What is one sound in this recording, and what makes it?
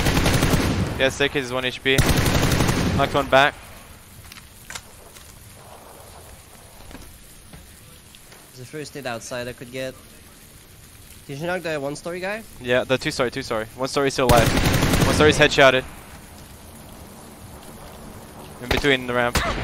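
A young man talks into a headset microphone.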